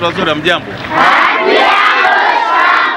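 A crowd of children shouts and cheers together.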